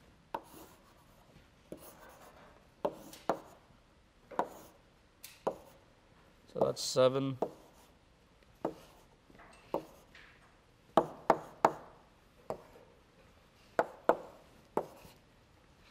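Chalk taps and scrapes sharply on a blackboard.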